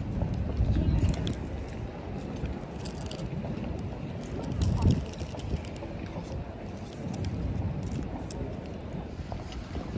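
A jacket rustles close by.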